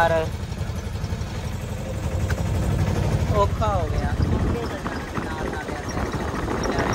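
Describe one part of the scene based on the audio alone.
An auto rickshaw engine rumbles steadily while driving.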